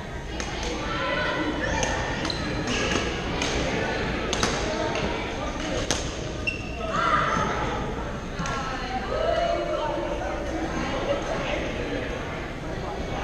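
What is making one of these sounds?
Paddles strike a ball with sharp pops.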